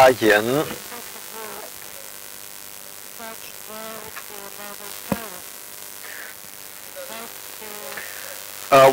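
A man speaks quietly from farther off.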